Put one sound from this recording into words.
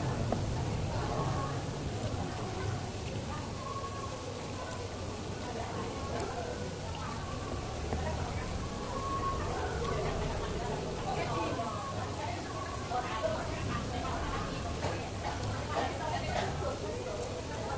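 A young man chews food noisily close by.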